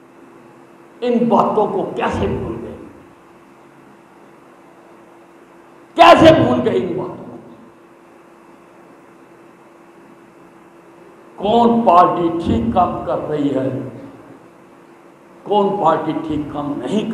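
An elderly man speaks forcefully into a microphone over a loudspeaker, in bursts with pauses, in a large echoing hall.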